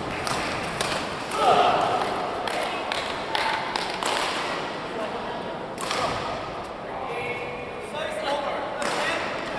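A crowd murmurs and voices call out in a large echoing hall.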